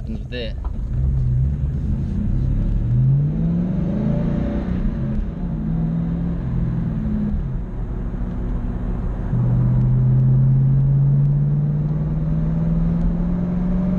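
A car engine hums low and revs up through the gears.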